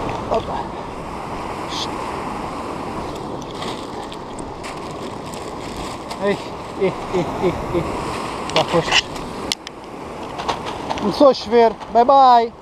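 Sea waves surge and break against rocks.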